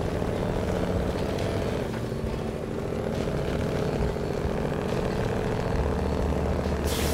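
A heavy truck engine rumbles and strains at low speed.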